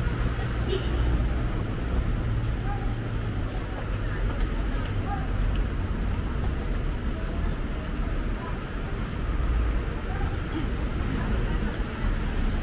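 Footsteps shuffle on concrete stairs.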